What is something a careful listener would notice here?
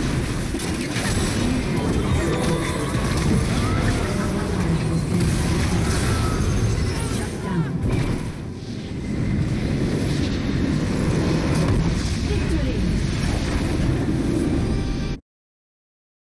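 Game battle effects of spells and blasts crash and whoosh loudly.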